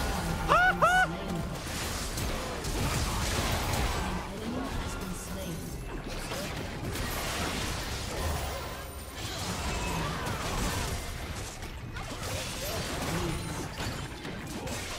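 Video game battle effects crackle and blast in quick succession.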